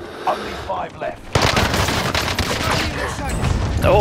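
Gunshots fire in quick bursts close by.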